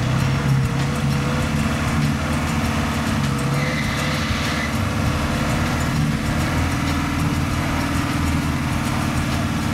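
An off-road truck engine rumbles and revs loudly close by.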